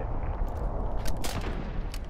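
A rifle magazine clicks as it is swapped.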